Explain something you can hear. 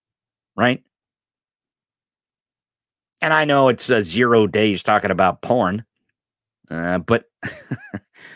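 A man speaks with animation, close into a microphone.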